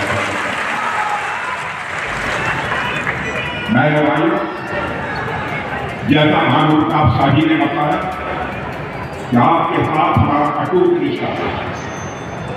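A crowd murmurs under a large tent.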